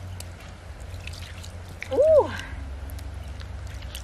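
Hands squelch and scrape in wet mud.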